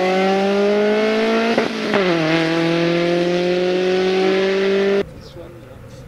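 A rally car engine roars at high revs and shifts gear as the car speeds away.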